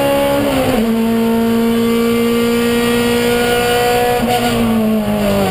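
Wind and road noise rush past the car.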